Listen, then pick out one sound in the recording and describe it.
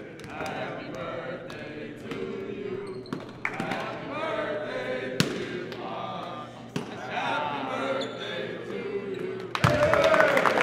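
A man speaks calmly to a group in an echoing hall.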